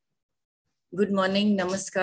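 A middle-aged woman speaks through an online call.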